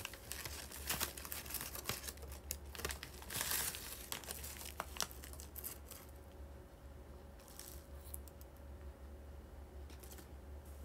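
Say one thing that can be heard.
A young woman chews food noisily close to a microphone.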